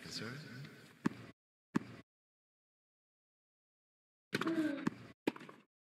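A tennis ball is struck sharply with a racket.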